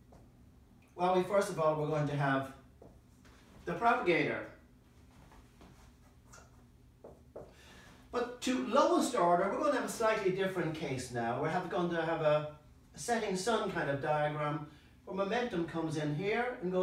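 An elderly man lectures calmly, close by.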